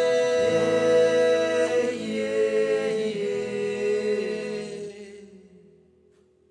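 A man sings close to a microphone.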